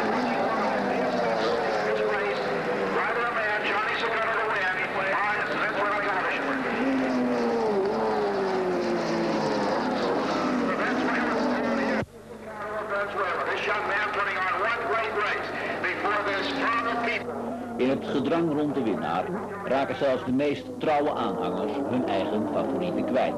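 Motorcycle engines roar past at high speed, rising and falling in pitch.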